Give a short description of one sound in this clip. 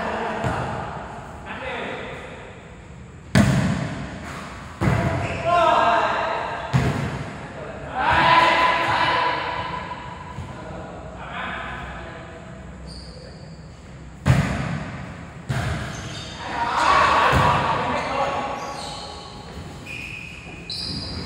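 Young men shout and call out to each other, echoing in a large hall.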